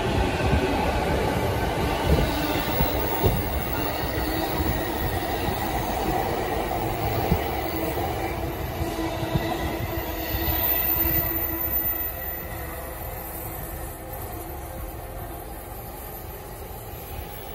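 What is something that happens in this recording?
An electric commuter train pulls away, its motors whining.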